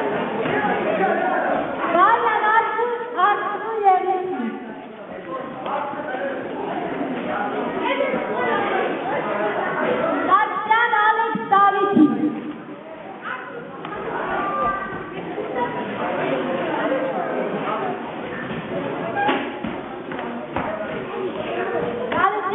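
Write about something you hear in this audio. Children and adults chatter and call out in an echoing hall.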